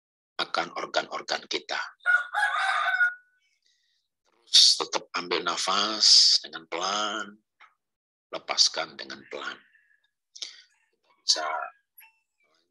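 A middle-aged man speaks calmly and slowly close to a microphone, with pauses.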